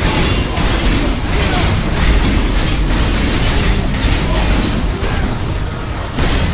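Heavy magical blasts and impacts crash and rumble.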